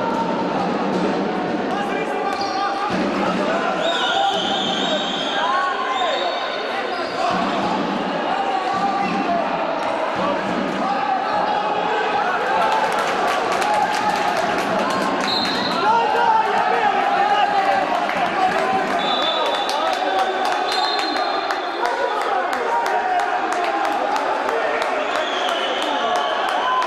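A crowd of spectators cheers and chatters loudly in an echoing hall.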